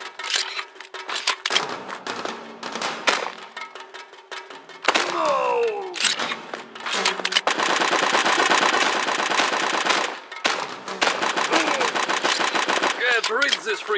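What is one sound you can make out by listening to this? A pistol magazine clicks as it is reloaded.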